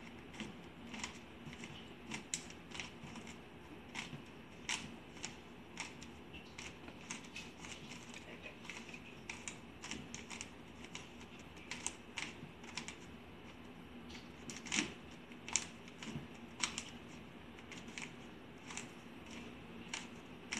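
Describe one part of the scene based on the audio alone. A puzzle cube clicks and clacks rapidly as its layers are turned.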